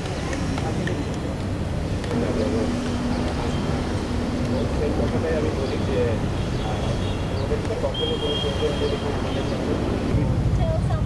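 A man speaks with animation outdoors.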